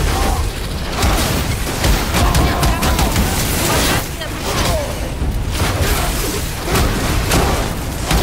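Heavy blows crash and thud as a warrior fights.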